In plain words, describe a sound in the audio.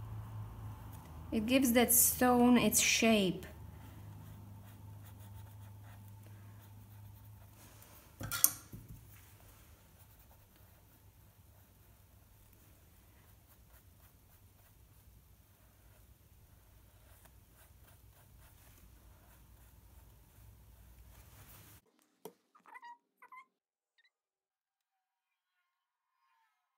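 A paintbrush taps and brushes softly on a canvas.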